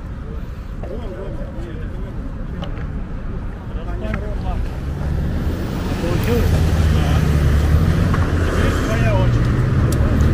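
Young men talk casually nearby.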